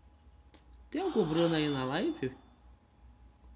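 A short triumphant fanfare plays.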